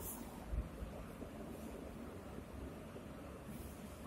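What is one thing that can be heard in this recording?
A whiteboard eraser rubs across a board.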